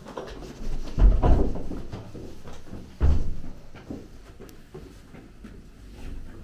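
Footsteps thump on stairs indoors.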